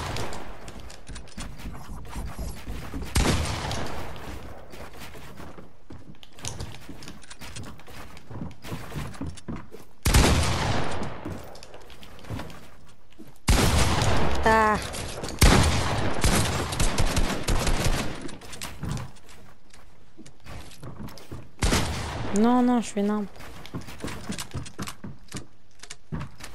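Wooden and glass building pieces clatter rapidly into place in a video game.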